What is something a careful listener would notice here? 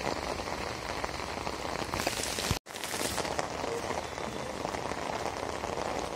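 Heavy rain pours down onto wet pavement and puddles outdoors.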